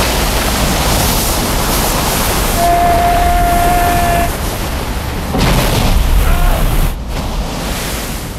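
Wind and spray roar steadily against a craft's hull.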